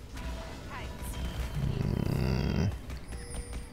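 A heavy sword blow lands with a loud, deep whoosh.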